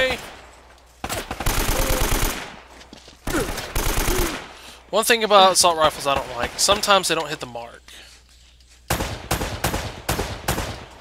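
Guns fire in rapid bursts of sharp shots.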